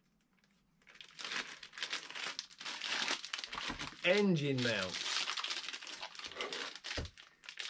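Plastic parts rustle and click in a man's hands.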